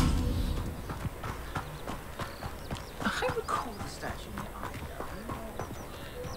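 Footsteps patter on the ground.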